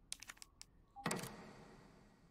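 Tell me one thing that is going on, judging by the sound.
A small metal piece clicks into a lock.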